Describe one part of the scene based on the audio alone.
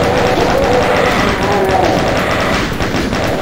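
A monster growls and roars.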